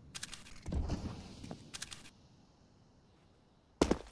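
A rifle scope clicks as it zooms in.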